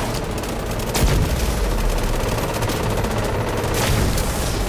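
A drone explodes with a loud blast.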